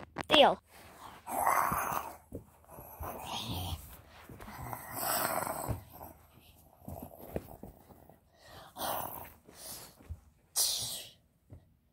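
Soft plush toys rustle as a hand handles them.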